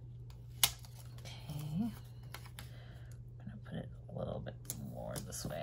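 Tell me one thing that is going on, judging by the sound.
Paper and a sticker sheet rustle and crinkle softly between hands.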